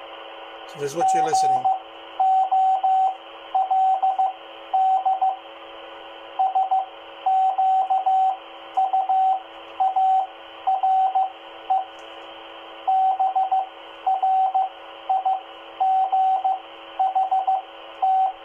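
A radio beeps in short repeated bursts of tone.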